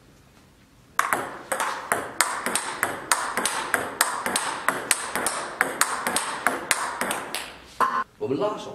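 A table tennis ball clicks off a paddle and table in a quick rhythm.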